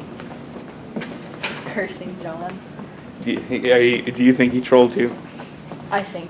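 A young woman talks animatedly close by.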